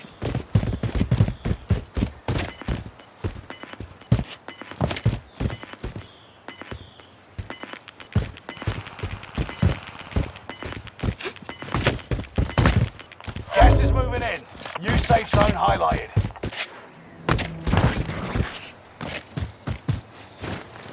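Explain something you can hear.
Footsteps crunch quickly over rocky ground and wooden boards.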